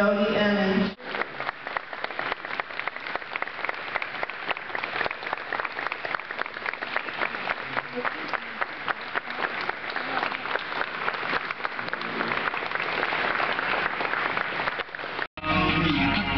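A crowd claps and applauds steadily.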